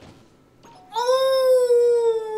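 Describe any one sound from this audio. A young woman cries out loudly into a close microphone.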